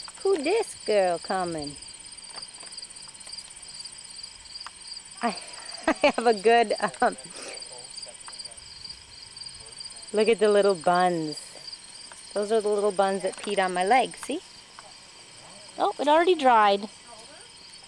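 A woman speaks close by in a bright, sing-song voice, in short bursts.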